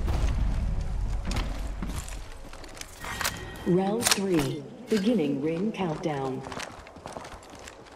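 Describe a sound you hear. Footsteps thump across wooden boards.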